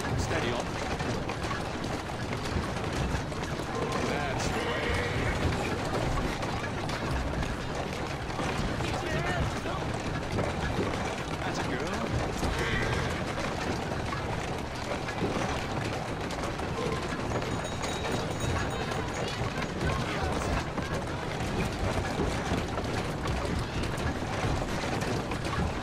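A horse-drawn carriage rattles over cobblestones.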